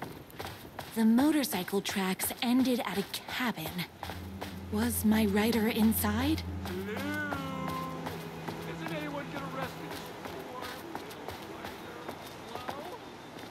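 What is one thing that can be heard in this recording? A woman speaks playfully and calls out close by.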